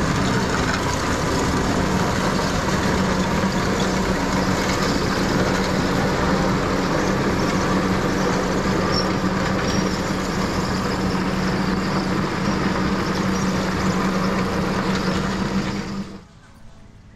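A vehicle engine drones steadily close by.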